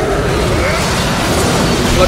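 A fiery blast bursts with a roar.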